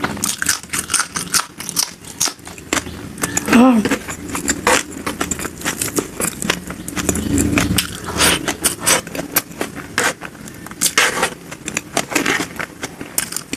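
A young woman chews and smacks her lips loudly and close up.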